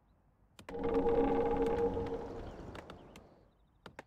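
A magical chime rings out and slowly fades.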